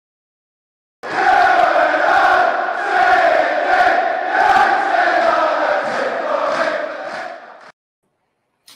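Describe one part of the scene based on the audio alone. A large crowd sings and chants loudly in a stadium.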